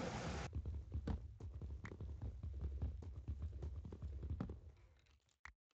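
Soft, rapid thuds of digging blocks in a game tap away.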